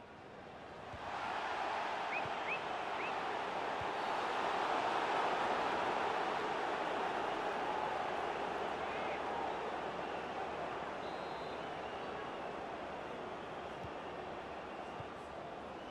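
A stadium crowd roars loudly, then slowly quietens.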